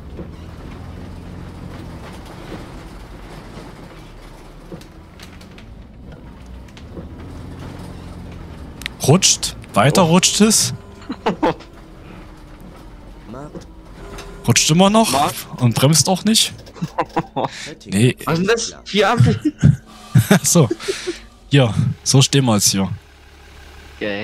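A natural-gas city bus engine hums low as the bus drives.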